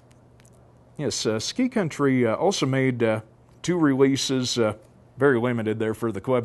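A middle-aged man reads aloud clearly into a microphone.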